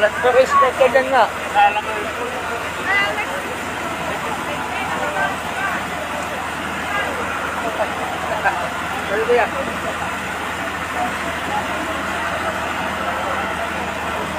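Fire hoses spray water with a steady rush.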